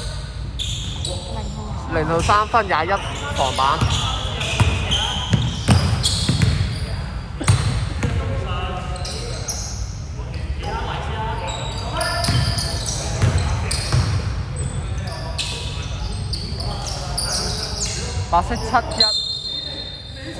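A basketball bounces on the floor in a large echoing hall.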